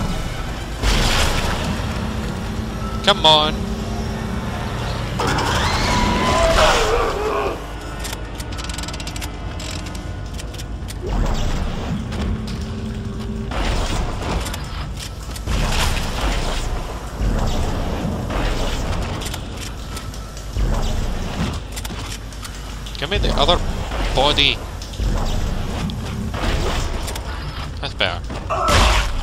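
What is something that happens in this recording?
Heavy metallic footsteps clank on a metal floor.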